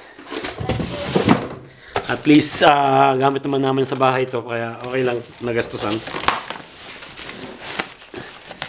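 Plastic packaging crinkles and rustles under hands.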